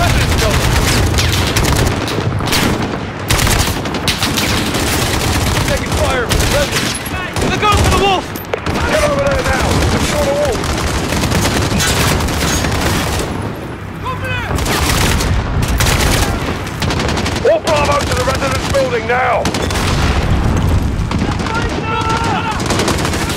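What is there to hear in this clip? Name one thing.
Rapid gunfire bursts loudly and close by.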